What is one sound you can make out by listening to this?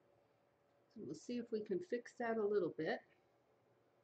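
A woman speaks briefly and calmly, close by.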